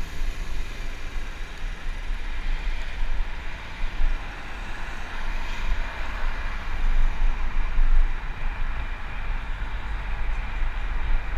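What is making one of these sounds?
Wind rumbles and buffets steadily outdoors.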